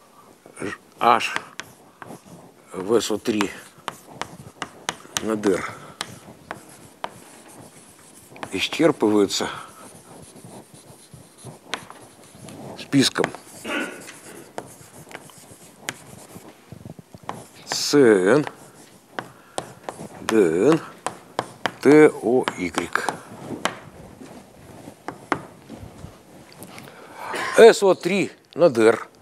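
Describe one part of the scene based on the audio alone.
An elderly man lectures calmly, speaking in short bursts.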